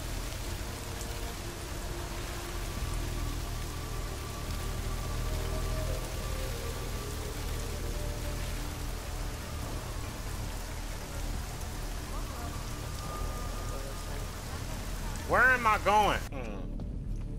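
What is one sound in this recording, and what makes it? Steady rain falls and patters outdoors.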